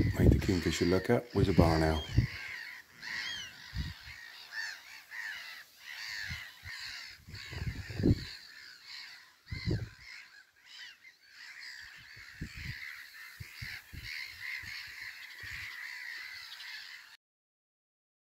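A kingfisher chirps and trills nearby.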